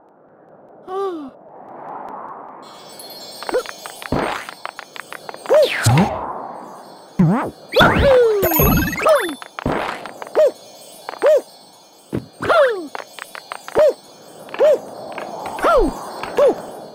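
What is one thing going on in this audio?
Short cartoonish voice yelps sound again and again with each jump.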